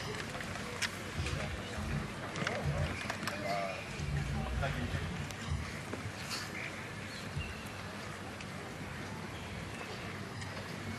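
A large outdoor crowd murmurs and chatters in the background.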